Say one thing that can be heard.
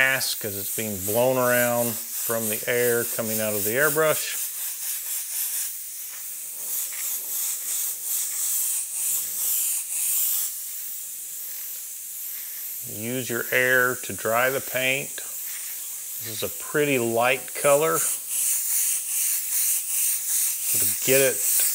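An airbrush hisses softly as it sprays.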